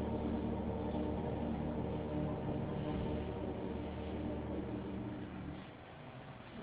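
A choir sings together, ending on a held chord.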